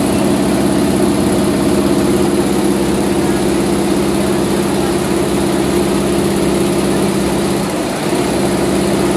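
Rows of embroidery machines whir and rattle steadily with fast stitching.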